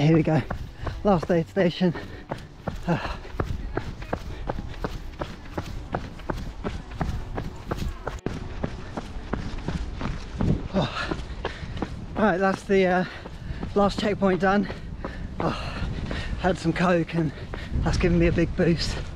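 A young man talks with animation close to the microphone, slightly out of breath.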